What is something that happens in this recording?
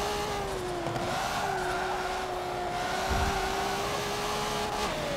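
Tyres squeal as a car drifts through a bend.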